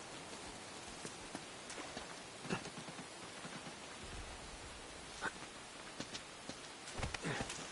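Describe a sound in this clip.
Footsteps run over wet ground.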